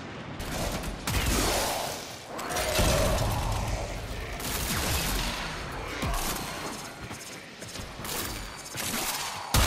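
A video game energy weapon fires with crackling blasts.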